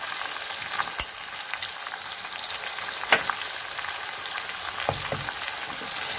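A wooden spatula scrapes and knocks against a metal pan.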